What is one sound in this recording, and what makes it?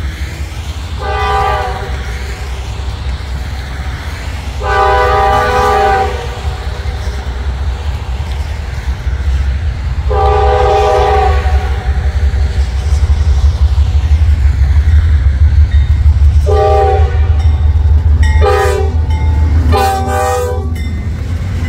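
A train horn blows in long and short blasts.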